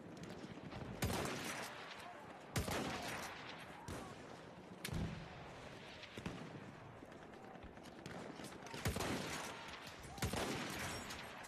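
Gunshots crack from a rifle, one at a time.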